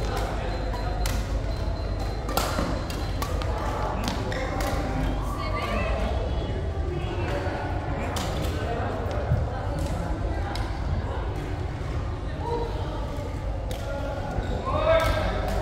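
People talk nearby in a large echoing hall.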